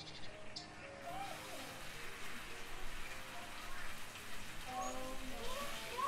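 Meat sizzles in a hot frying pan.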